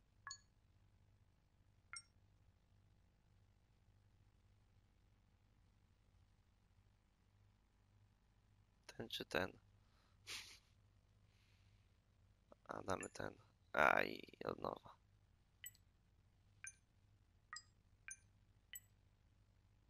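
Short electronic beeps sound as keypad buttons are selected.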